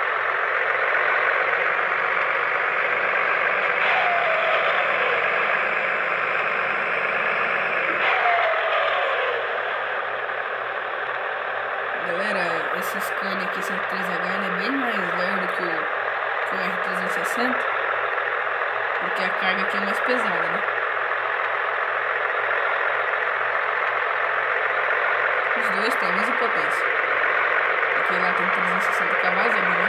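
A truck engine hums steadily as the truck drives along a road.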